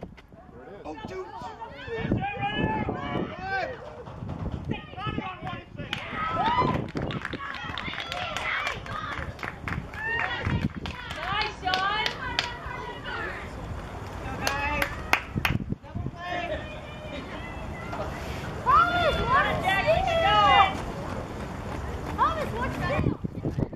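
Young girls cheer and chant loudly nearby.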